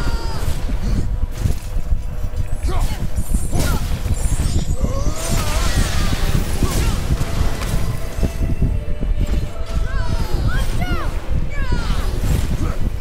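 A winged creature screeches shrilly again and again.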